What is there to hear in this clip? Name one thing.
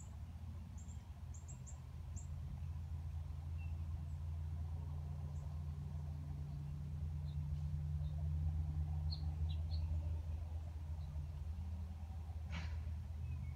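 A machine's motor hums low and steady close by.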